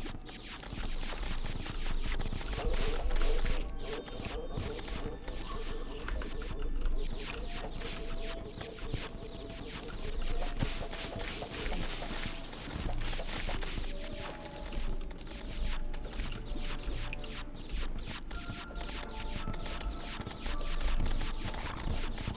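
Blocks break and clatter rapidly in a game as a character digs.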